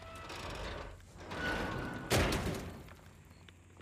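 A heavy metal hatch creaks and swings open.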